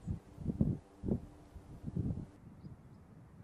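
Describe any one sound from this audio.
Wind blows through grass in strong gusts.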